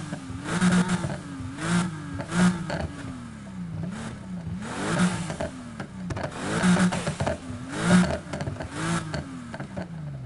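Exhaust pops and bangs crackle between the revs.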